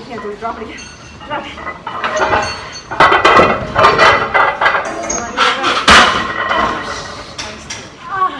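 Weight plates clank against a machine.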